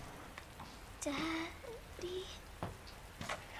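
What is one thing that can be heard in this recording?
A little girl speaks softly in a small voice.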